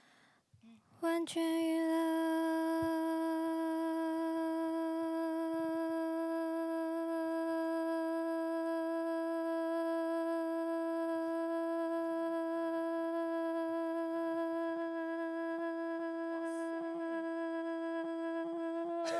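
A young woman sings one long, steady note through a microphone.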